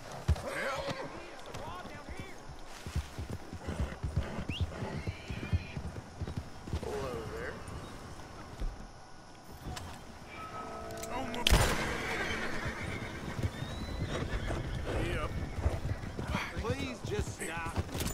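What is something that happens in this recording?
Horse hooves thud on grass and dirt at a gallop.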